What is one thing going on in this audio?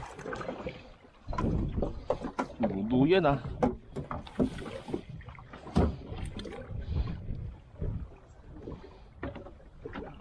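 Choppy sea water slaps against a small boat's hull.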